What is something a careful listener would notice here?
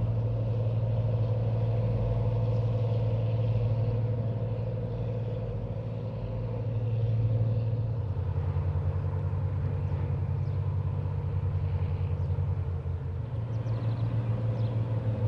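A towboat's diesel engine drones while it pushes a loaded barge.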